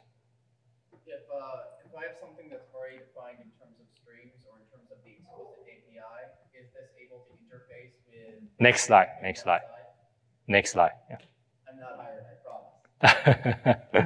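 A young man speaks calmly and steadily through a microphone.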